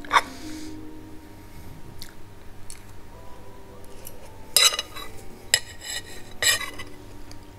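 A woman chews food noisily, close by.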